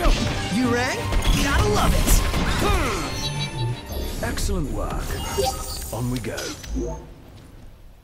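Creatures screech during a fight.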